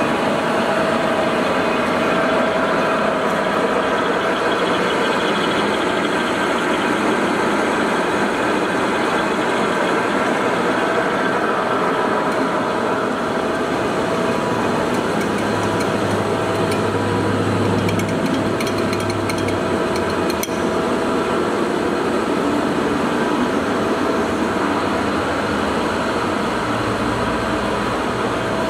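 A large lathe motor hums and whirs steadily.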